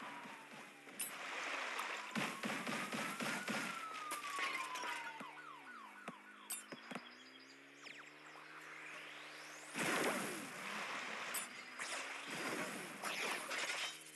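Rapid bursts of game gunfire crackle and fizz.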